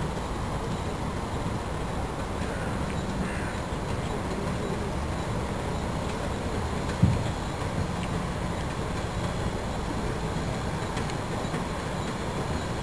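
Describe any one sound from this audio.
A steam boat engine chugs steadily.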